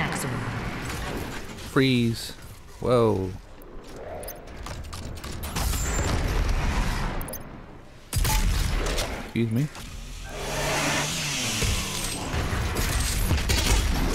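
Monsters growl and screech.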